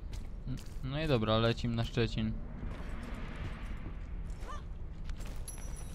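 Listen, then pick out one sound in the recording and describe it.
Footsteps run over hard ground and wooden boards.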